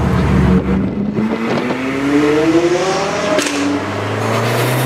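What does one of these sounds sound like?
A sports car engine revs loudly and rises in pitch.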